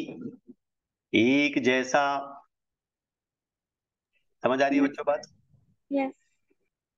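A man speaks calmly into a close microphone, explaining in short phrases with pauses.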